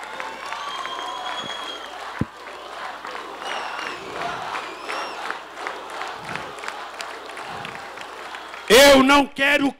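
A crowd cheers and chatters loudly.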